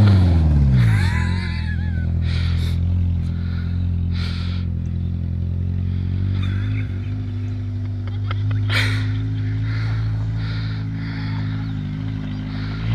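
A pickup truck engine rumbles steadily as the truck drives away.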